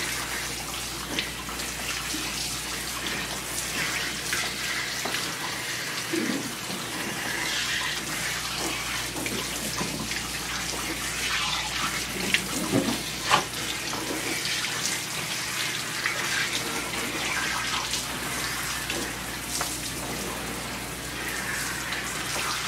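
Water sprays steadily from a hose onto a dog.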